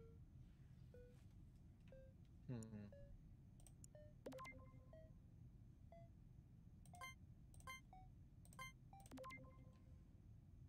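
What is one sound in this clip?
Short electronic chimes and blips sound.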